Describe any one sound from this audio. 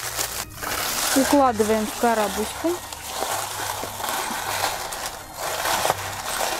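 Shredded paper rustles and crinkles as it is pushed into a box.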